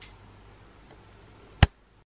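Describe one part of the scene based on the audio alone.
A man bites into a crunchy snack.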